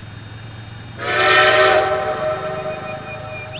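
A steam locomotive whistle blows loudly.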